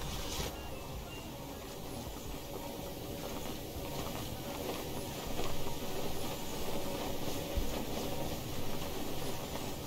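A glider flutters in the wind.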